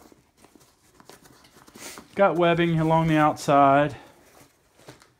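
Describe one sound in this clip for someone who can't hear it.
Hands rustle and pat a stiff fabric bag.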